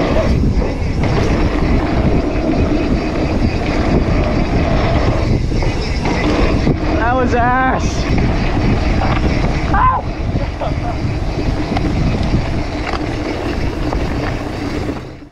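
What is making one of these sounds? Bicycle tyres rumble over a bumpy dirt trail.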